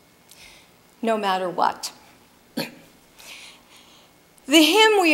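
A woman speaks through a microphone in an echoing room.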